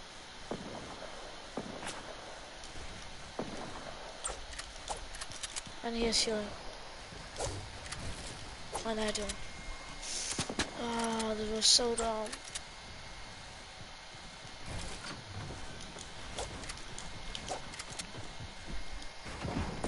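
Wooden walls snap into place with quick knocks.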